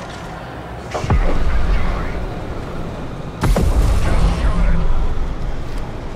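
Two heavy blasts boom, each followed by a long rumble.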